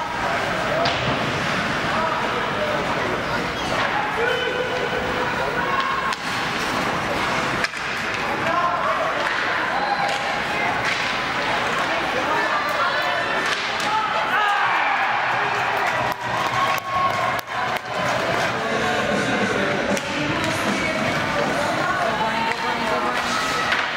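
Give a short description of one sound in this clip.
A crowd of spectators chatters and calls out in an echoing rink.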